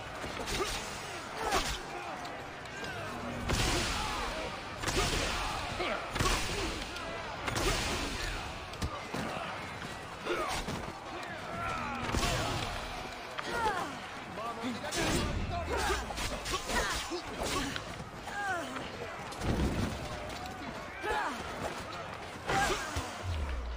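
A young man talks with animation into a close microphone.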